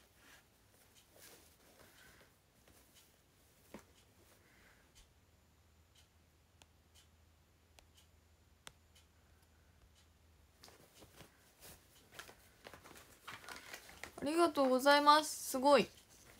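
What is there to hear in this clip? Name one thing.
A young woman speaks close by, quietly at first and then with rising animation.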